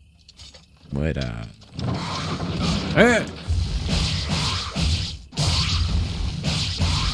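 Swords clash in a video game battle.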